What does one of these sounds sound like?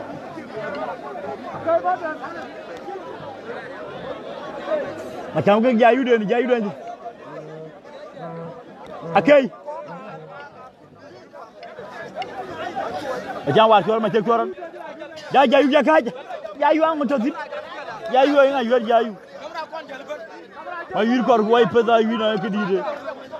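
A large crowd murmurs and cheers outdoors in the distance.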